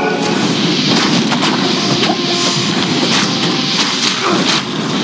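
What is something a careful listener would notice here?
Fireballs whoosh and burst.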